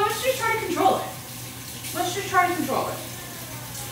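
A woman speaks brightly nearby.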